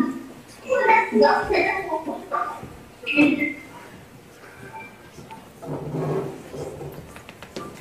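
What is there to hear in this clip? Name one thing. A young man speaks calmly through a microphone in an echoing hall.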